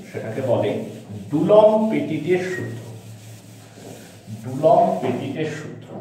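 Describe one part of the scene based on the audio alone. A cloth rubs across a chalkboard.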